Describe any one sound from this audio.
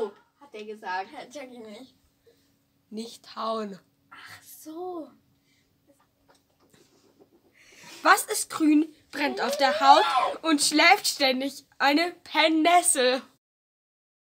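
A second girl answers and giggles close by.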